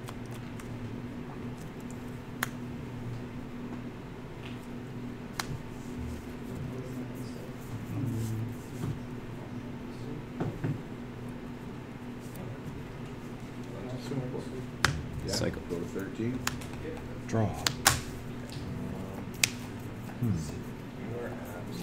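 Playing cards slide and tap softly on a mat.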